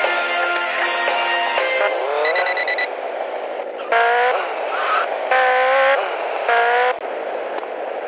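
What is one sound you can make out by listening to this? A motorbike engine revs up and down.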